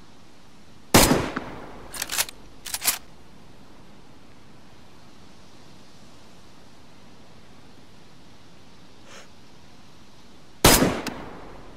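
A bolt-action rifle fires a single shot.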